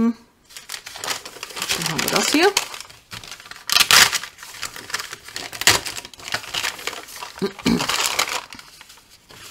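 Crumpled paper crinkles and rustles loudly.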